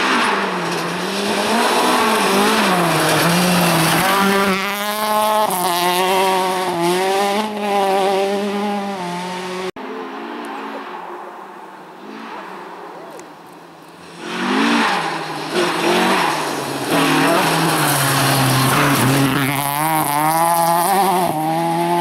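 A rally car engine roars and revs hard as it speeds past.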